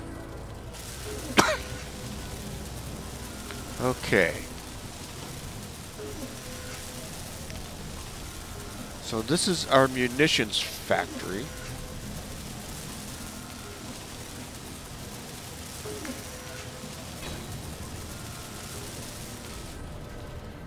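A welding torch hisses and crackles with sparks.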